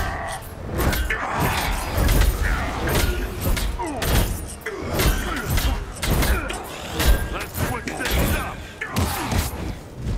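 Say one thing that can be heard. Sharp zaps and whooshes sweep back and forth.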